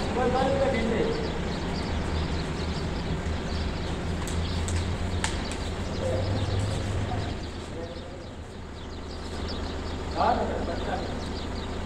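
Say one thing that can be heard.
A man calls out outdoors.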